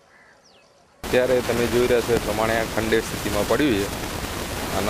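A man speaks calmly and close into a microphone.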